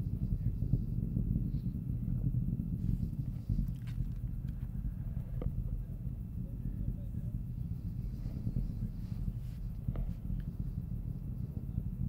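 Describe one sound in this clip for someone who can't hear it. A distant rocket rumbles low and steady overhead.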